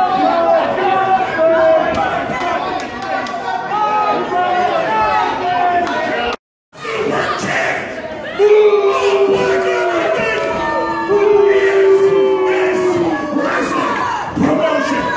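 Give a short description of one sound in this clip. A large crowd chants and cheers loudly in an echoing hall.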